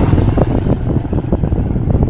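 A motorbike engine hums as it passes by.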